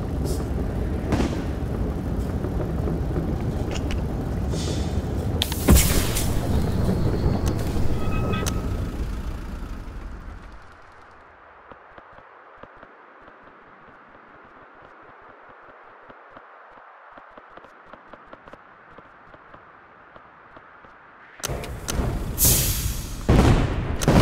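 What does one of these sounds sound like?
A heavy vehicle's engine rumbles and clanks.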